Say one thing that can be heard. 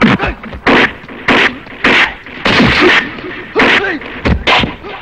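Men grunt and cry out as they fight.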